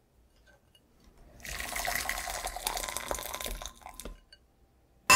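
Water pours and splashes into a glass jug.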